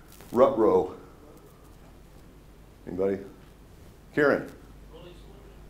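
A middle-aged man speaks in short bursts through a headset microphone.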